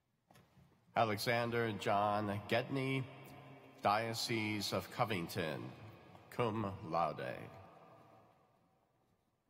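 A man speaks into a microphone, reading out, echoing through a large hall.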